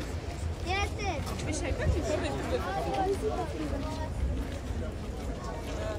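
Several adults talk casually nearby outdoors.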